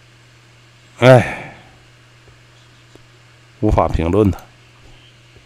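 A middle-aged man speaks briefly and casually into a close microphone.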